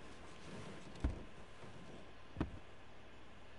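Shoes thump twice onto a car dashboard.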